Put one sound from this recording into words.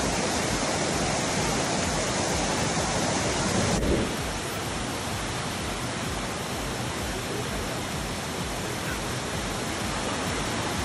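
Water rushes and splashes loudly down a waterfall.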